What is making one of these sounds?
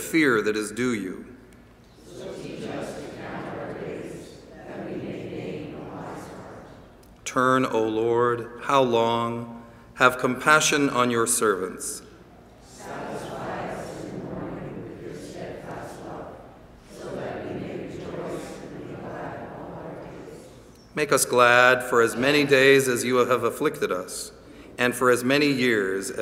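An elderly man reads aloud calmly through a microphone in a large echoing hall.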